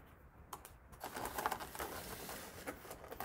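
A plastic container rustles and crinkles.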